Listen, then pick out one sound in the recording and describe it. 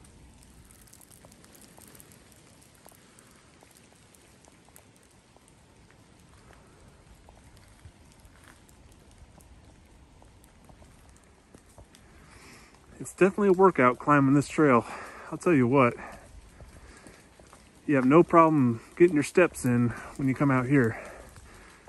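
Light rain patters softly on leaves outdoors.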